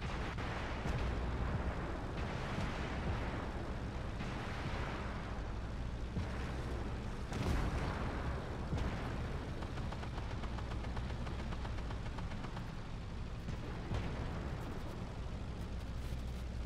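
Tank tracks grind over sand.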